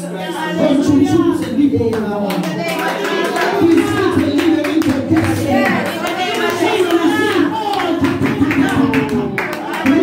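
A group of women pray aloud together, many voices overlapping with fervour.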